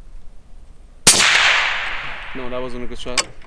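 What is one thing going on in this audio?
A rifle fires a single loud shot that echoes outdoors.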